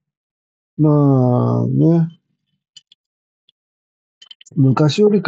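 A man speaks with a drawn-out, emphatic voice close by.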